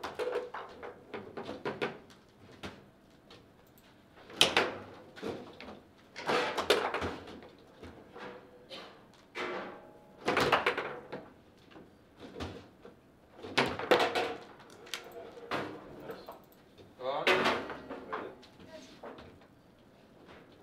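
Plastic handles and rods clack as players spin and slide them.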